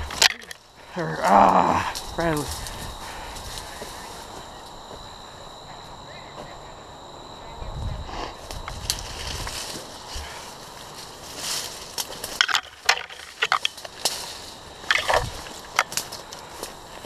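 Footsteps crunch through dry brush and twigs.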